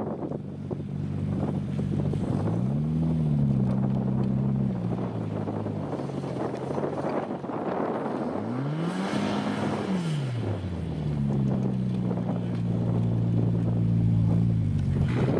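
A car engine revs hard, rising and falling as it labours uphill.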